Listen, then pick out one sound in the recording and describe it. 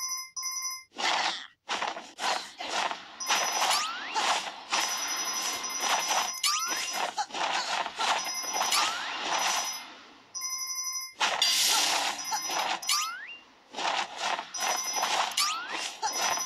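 A rushing whoosh sounds as a game character glides through the air.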